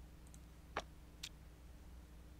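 A small object clinks as it is set down on a wooden table.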